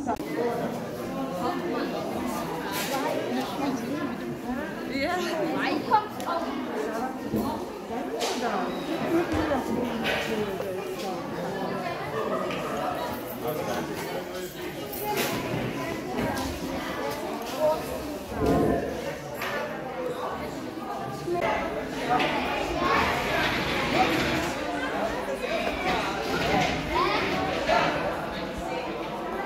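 A crowd of adults and children chatters throughout in an echoing hall.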